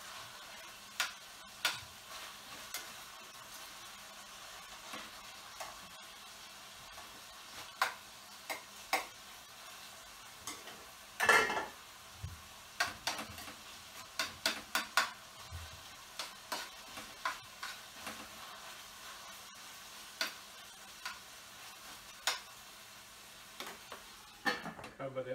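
Metal utensils clink against pans on a stove.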